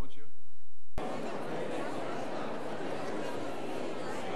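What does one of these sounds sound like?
A large crowd chatters and mingles.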